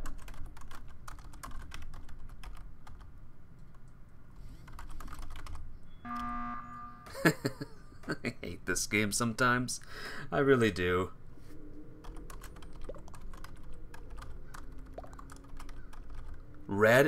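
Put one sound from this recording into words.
Keys click rapidly as someone types.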